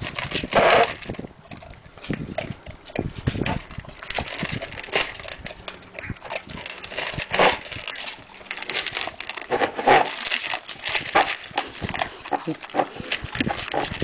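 Kibble rattles in a plastic bowl as a dog eats.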